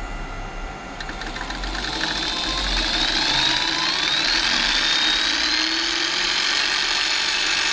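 A milling machine motor hums and whines as it spins up.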